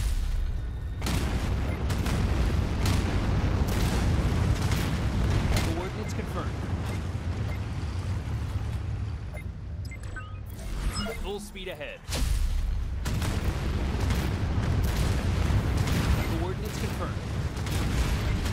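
Missiles whoosh as they launch.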